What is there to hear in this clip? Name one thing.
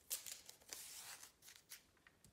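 Masking tape tears and rips off a roll.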